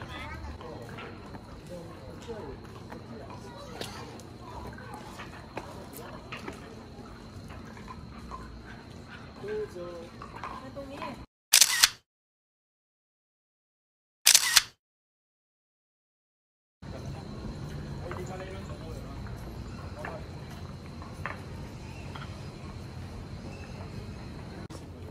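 Footsteps tap slowly on stone, close by.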